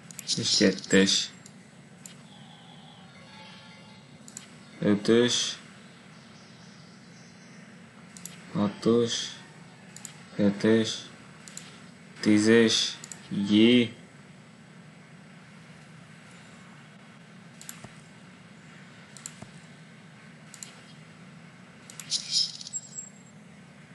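A woman talks calmly into a microphone, in short bursts.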